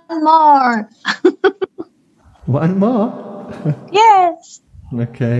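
A middle-aged woman laughs through an online call.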